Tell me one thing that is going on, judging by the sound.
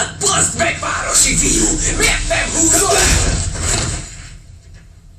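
Two men scuffle and grapple loudly.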